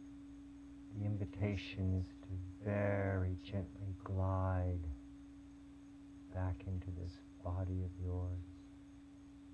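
A man speaks calmly and softly nearby.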